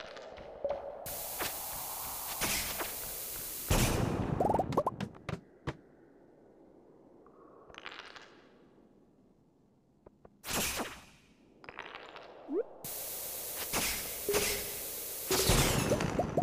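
A bomb's fuse hisses.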